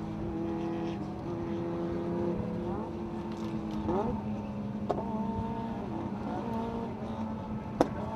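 An inline-six sports car engine revs and shifts gears, heard from inside the cabin.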